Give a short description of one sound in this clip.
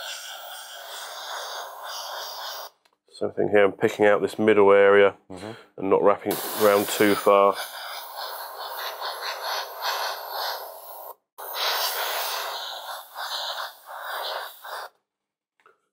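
An airbrush hisses in short bursts as it sprays.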